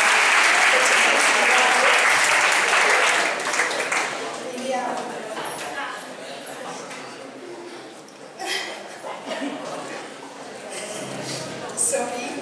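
A young woman laughs softly into a microphone.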